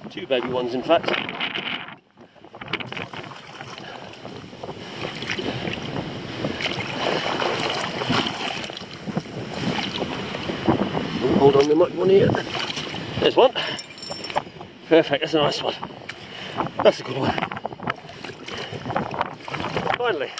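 Water splashes and gurgles around rocks close by.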